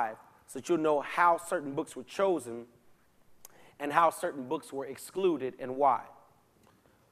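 A man speaks with animation into a microphone in a large echoing hall.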